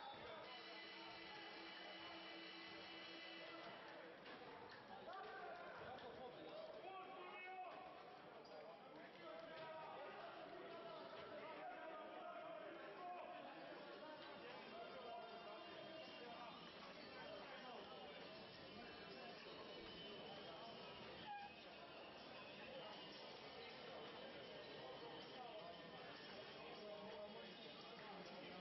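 A crowd of spectators cheers and chatters loudly in a large echoing hall.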